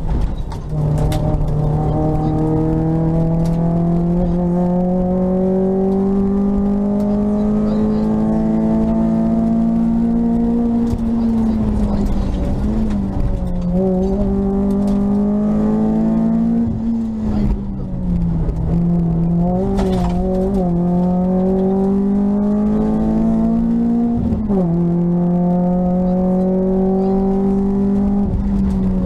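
A car engine roars loudly up close, climbing in pitch and dropping sharply at each gear change.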